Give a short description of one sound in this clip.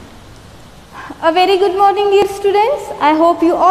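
A woman speaks calmly and clearly into a close microphone.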